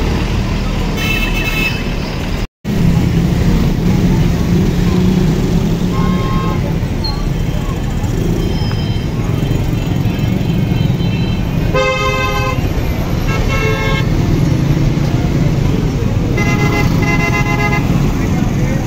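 Vehicle horns honk in short bursts.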